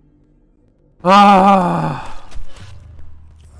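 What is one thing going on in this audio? A blast booms.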